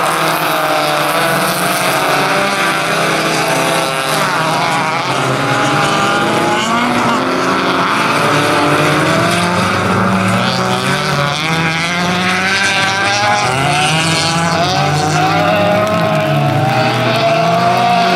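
Racing car engines roar and rev.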